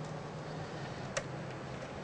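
A circuit board clicks and scrapes as it is pulled from its slot.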